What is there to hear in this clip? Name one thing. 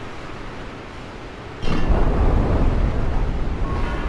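A lever clanks as it is pulled.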